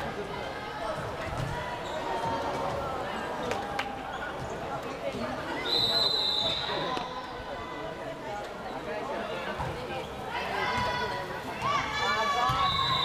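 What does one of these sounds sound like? Young women players shout and call out to each other in a large echoing hall.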